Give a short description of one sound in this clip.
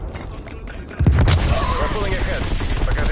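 An explosion booms heavily.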